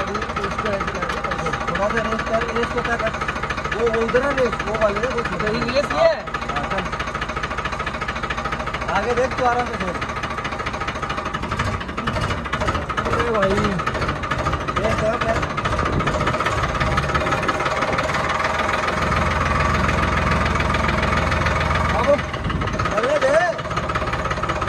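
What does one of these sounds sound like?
A young man talks calmly nearby over the engine.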